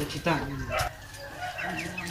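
A chicken clucks.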